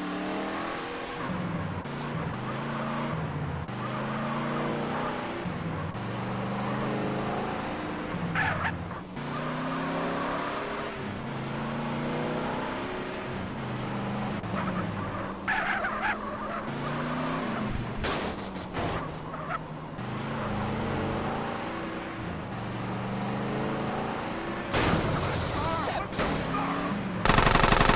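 A car engine roars as a car accelerates along a road.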